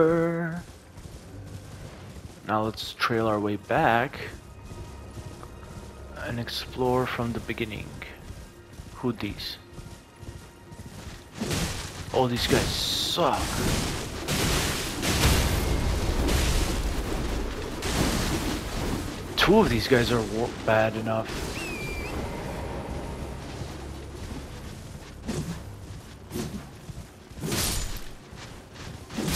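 Horse hooves pound steadily on grass.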